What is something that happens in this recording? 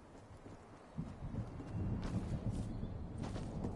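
Footsteps patter on grass.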